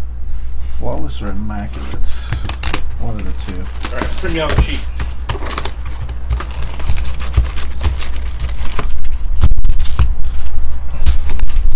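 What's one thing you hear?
Foil-wrapped packs and a cardboard box rustle and rattle as hands handle them.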